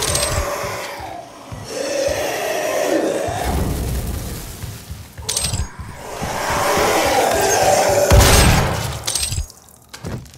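A shotgun fires with loud, booming blasts.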